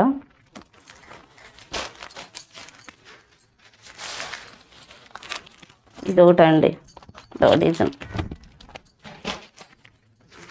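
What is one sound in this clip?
Fabric rustles as cloth is lifted and laid down.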